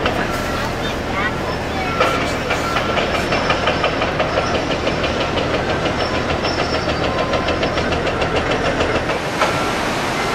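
A heavy machine's engine rumbles close by.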